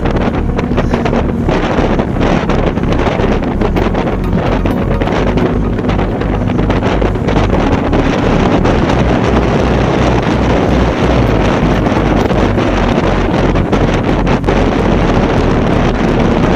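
Wind rushes loudly past a moving bicycle rider outdoors.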